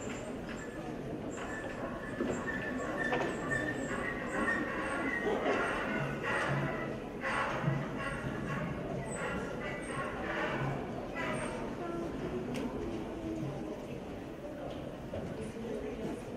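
Young people murmur softly in an echoing hall.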